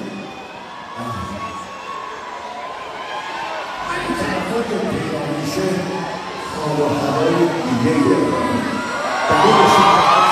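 A crowd sings along loudly.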